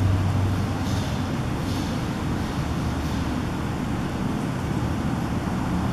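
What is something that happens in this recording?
An animal chews and tears at raw meat.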